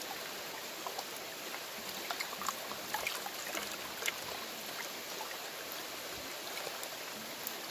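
Gravel rattles and scrapes in a plastic pan.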